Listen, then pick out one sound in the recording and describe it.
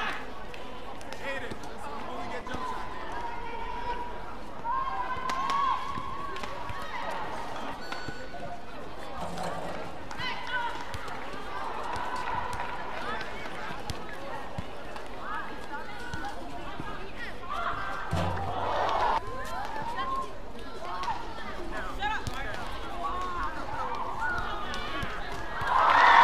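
Badminton rackets strike a shuttlecock back and forth in a large hall.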